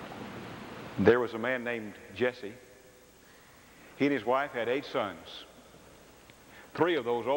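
A man speaks loudly and deliberately into a microphone in a large echoing hall.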